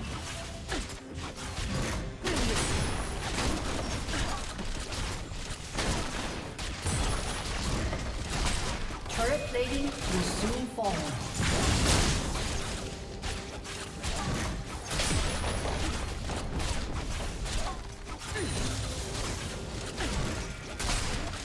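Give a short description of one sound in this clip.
Fantasy game spells crackle and blast in a busy fight.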